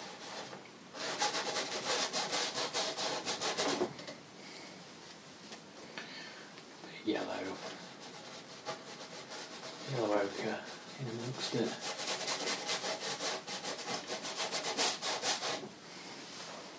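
A brush scrubs and scratches against a canvas.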